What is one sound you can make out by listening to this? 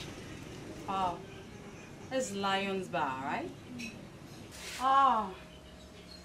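A woman talks animatedly close by.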